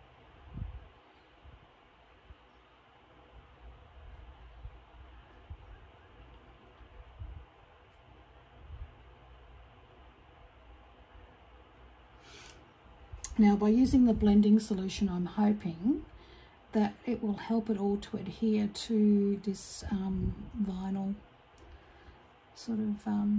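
A paintbrush brushes softly against paper.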